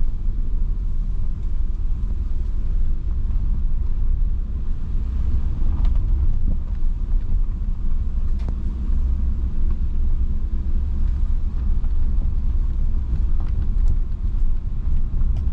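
A car engine rumbles low and steady from inside the cabin.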